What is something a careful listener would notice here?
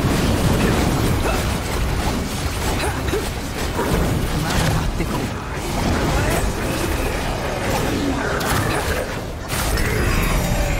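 Weapons strike and clang against monsters.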